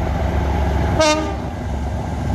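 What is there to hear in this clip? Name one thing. A train horn sounds a short blast.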